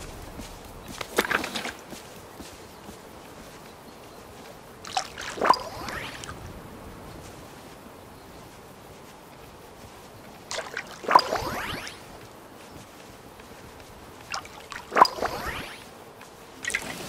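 Water splashes from a watering can in short bursts.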